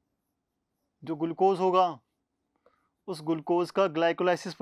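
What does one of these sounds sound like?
A man speaks with animation, close to a microphone.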